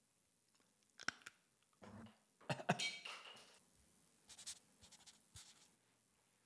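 Objects click and tap near the microphone.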